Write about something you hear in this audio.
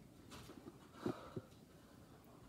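Sneakers thump softly on a mat.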